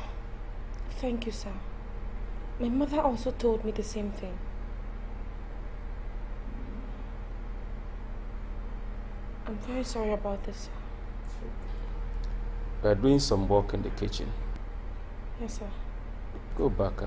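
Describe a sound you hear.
A young woman speaks in an upset voice nearby.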